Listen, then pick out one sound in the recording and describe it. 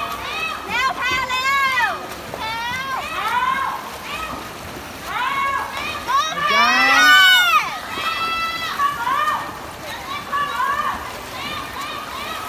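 Swimmers splash through the water with steady strokes.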